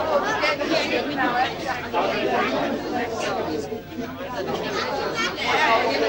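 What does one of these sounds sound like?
A crowd of men chatter and talk over one another close by.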